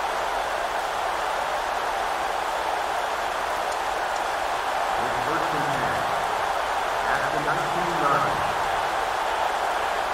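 A stadium crowd murmurs and roars steadily in the distance.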